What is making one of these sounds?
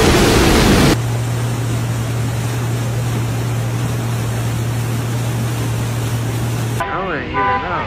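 Floodwater rushes and churns around a post.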